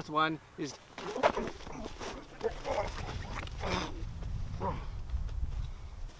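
Two men scuffle and grapple.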